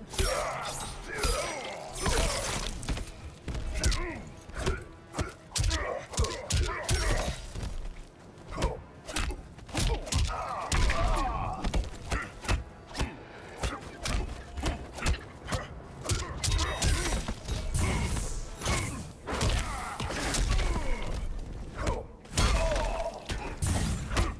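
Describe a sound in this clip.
Heavy punches and kicks thud and smack in a fast fight.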